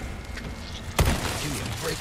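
A gunshot bangs once.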